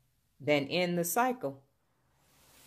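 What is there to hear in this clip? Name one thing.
A woman speaks a few quick, lively words up close.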